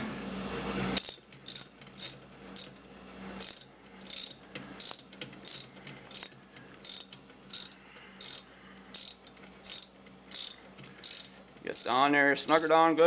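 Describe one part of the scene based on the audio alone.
A ratchet wrench clicks in quick, regular strokes.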